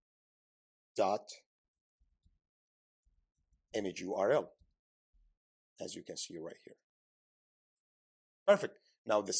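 A young man speaks in short bursts, close to a microphone, with animation.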